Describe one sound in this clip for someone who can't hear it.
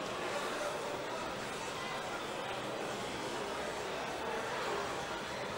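A crowd murmurs and cheers in the background.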